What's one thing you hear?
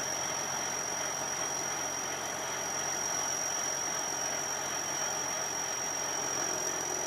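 Rice grain pours from an auger into a truck bed.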